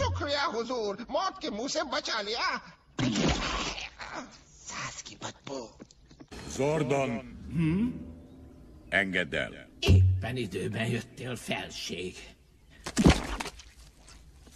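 A man speaks in a slow, menacing voice.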